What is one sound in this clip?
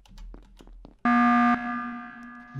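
An electronic alarm blares briefly.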